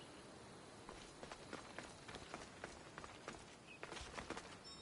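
Footsteps crunch on rock and grass.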